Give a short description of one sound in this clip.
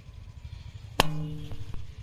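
A balloon bursts with a loud bang.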